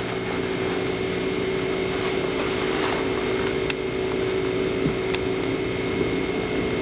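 A nylon backpack rustles as it is handled.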